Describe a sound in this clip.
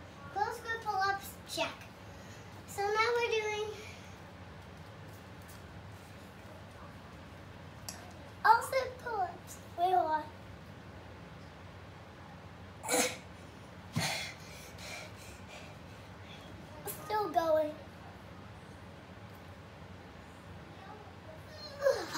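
A young boy talks excitedly close by.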